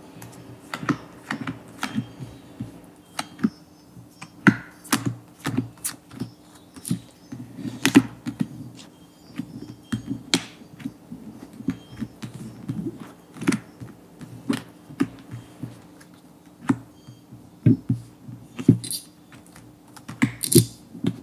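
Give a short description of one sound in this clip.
Playing cards are dealt and slapped down onto a soft table.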